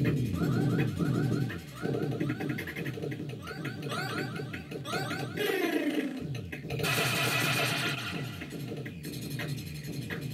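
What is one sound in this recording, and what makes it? Electronic game music plays with a fast, chirping beat.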